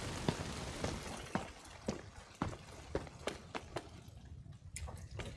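Heavy armoured footsteps thud on a hard floor at a steady pace.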